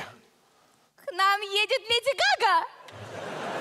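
A woman speaks excitedly in a high voice through a headset microphone.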